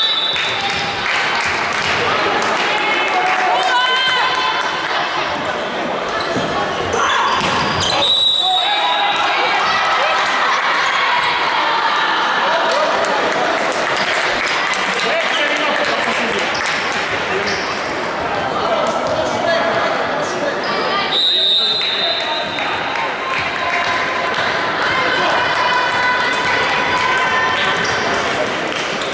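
Young women call out to each other across a large echoing hall.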